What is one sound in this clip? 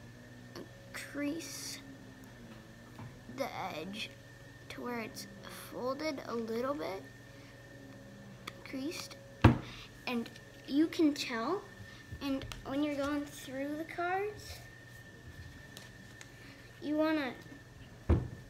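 A young boy talks close to the microphone in a casual way.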